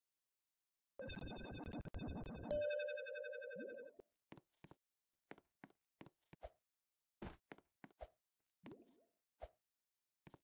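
Short electronic game sounds chime, buzz and pop.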